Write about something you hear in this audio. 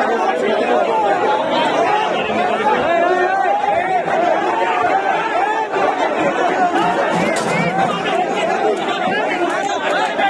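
A crowd of men shouts and argues loudly outdoors.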